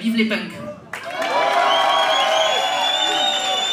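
A crowd cheers.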